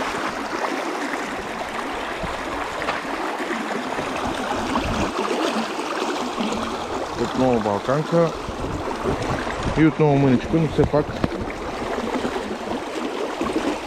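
A shallow stream rushes and splashes over stones.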